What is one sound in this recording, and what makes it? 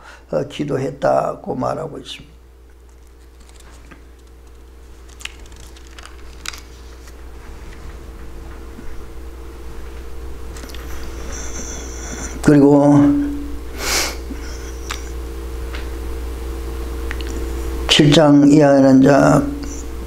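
An elderly man speaks calmly into a microphone, pausing between phrases.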